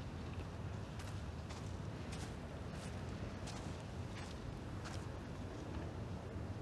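Slow, heavy footsteps thud on hard ground.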